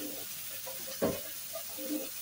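A metal utensil clinks against a bowl.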